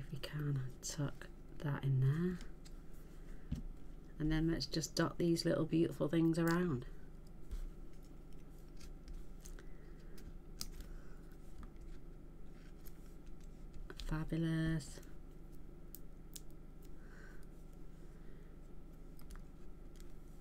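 Paper rustles and taps softly under hands.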